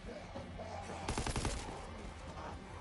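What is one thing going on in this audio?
A rapid burst of gunfire rings out.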